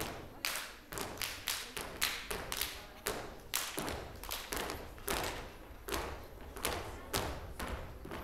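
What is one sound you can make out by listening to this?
Dancers' heels stamp rhythmically on a wooden stage.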